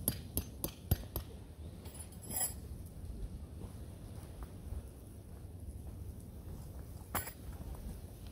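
A tent stake is hammered into the ground with sharp knocks.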